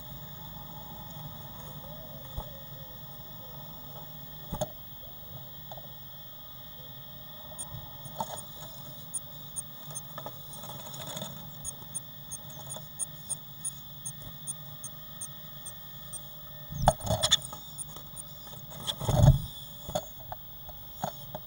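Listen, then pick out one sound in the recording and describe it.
A blue tit rustles and shuffles in moss and grass nesting material inside a nest box.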